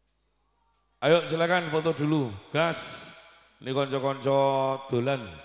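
A man speaks loudly and with animation through a microphone and loudspeakers.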